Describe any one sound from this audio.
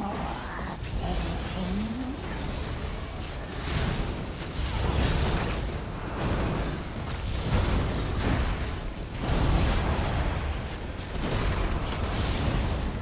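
Magic spells crackle and burst in quick succession.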